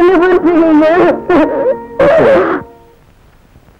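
A woman sobs and wails loudly.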